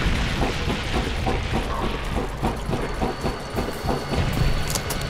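Heavy footsteps thud on a metal floor.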